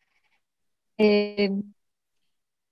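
A young woman answers briefly over an online call.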